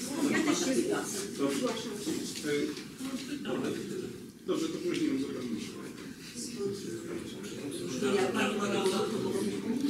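A woman speaks calmly.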